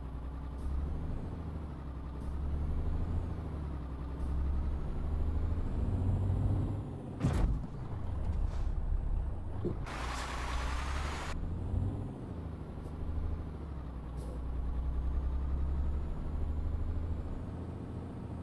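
A truck engine rumbles low and steady, rising and falling as it drives.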